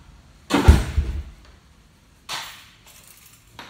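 A wooden cupboard door slides open with a knock and a rattle.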